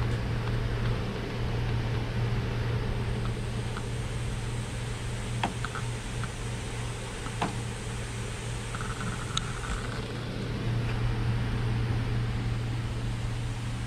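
A plastic truck bed cover clicks and knocks as hands handle it.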